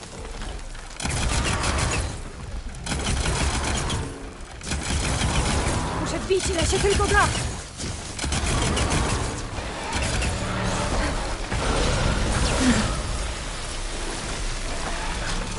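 Game sound effects boom and rumble.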